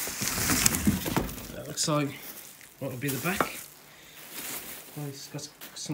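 Plastic wrapping crinkles as it is pulled and handled.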